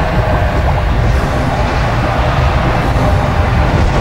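A magic energy ring hums and crackles as it grows.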